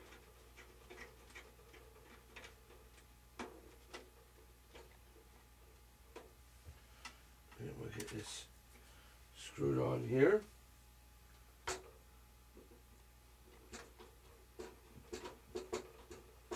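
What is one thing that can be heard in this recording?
Small plastic parts click and knock close by.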